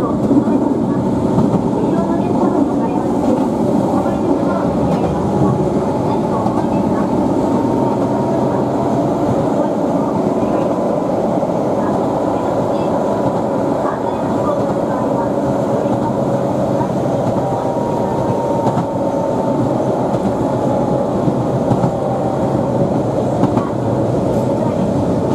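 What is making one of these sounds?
A train rumbles steadily along the tracks, heard from inside the cab.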